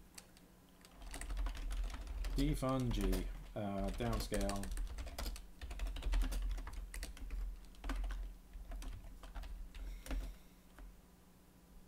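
Computer keys clatter as a man types.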